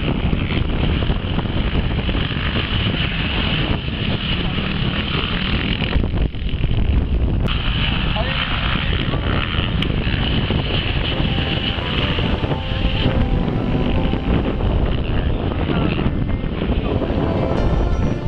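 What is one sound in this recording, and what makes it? Motorcycle engines roar and whine as dirt bikes race by.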